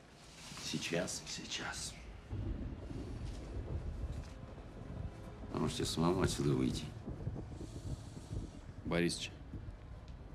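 A man speaks in short, tense bursts nearby.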